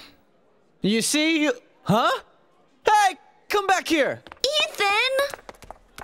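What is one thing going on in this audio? A young man shouts with excitement.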